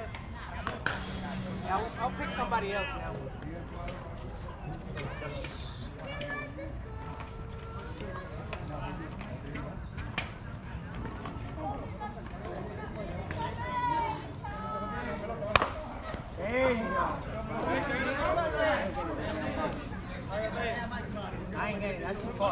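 Men call out and shout across an open outdoor field.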